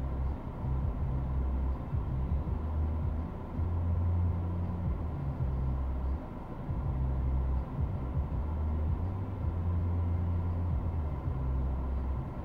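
A car engine idles nearby with a low, steady rumble.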